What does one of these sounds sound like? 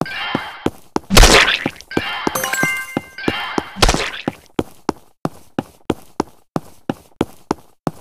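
Game sound effects pop and chime quickly.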